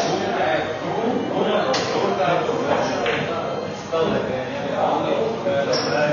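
Pool balls click together on a table.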